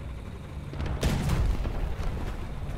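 A large explosion booms nearby.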